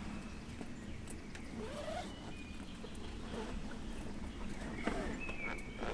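Items rustle and knock in a car boot.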